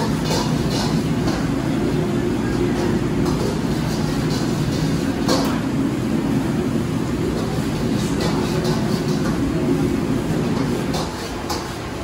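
A kitchen exhaust hood roars.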